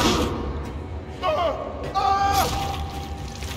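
A monster shrieks and snarls close by.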